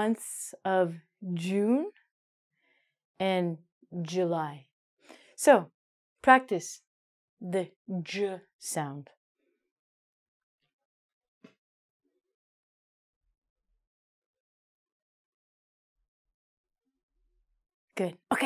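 A woman speaks clearly and slowly into a close microphone, as if teaching.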